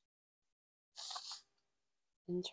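Tarot cards are shuffled in the hands.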